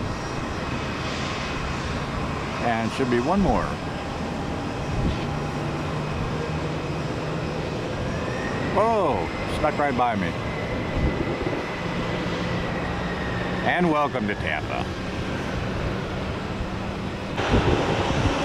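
A jet engine roars and whines steadily nearby.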